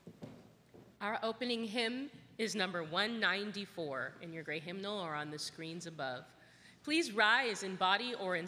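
A group of people sings a hymn together in a large echoing hall.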